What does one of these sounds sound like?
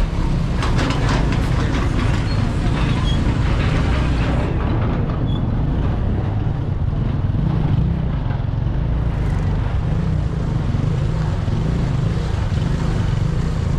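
Wind rumbles loudly across a microphone outdoors.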